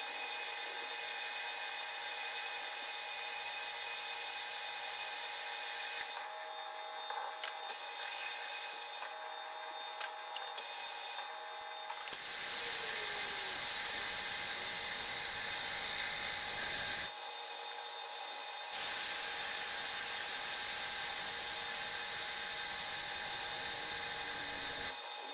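A cutting tool scrapes and hisses against spinning metal.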